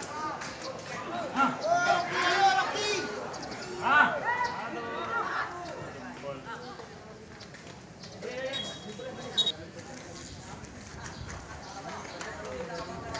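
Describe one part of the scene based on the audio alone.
Teenage boys shout to each other across an outdoor football pitch, heard from a distance.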